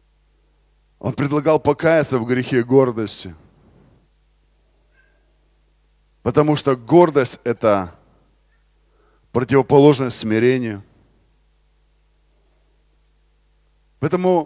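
A man speaks calmly into a microphone over loudspeakers in a large hall, pausing between phrases.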